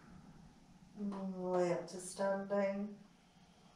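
A woman speaks calmly and clearly nearby.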